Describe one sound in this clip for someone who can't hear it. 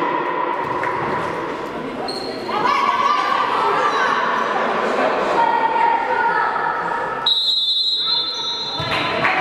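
Trainers squeak on a wooden court in a large echoing hall.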